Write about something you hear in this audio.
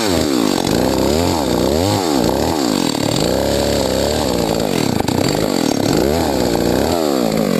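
A chainsaw cuts into a tree trunk.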